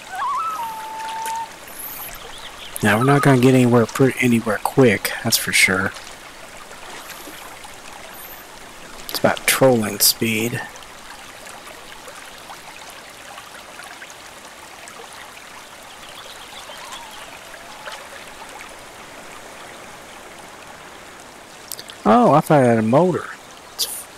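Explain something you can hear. Water laps softly against a small boat.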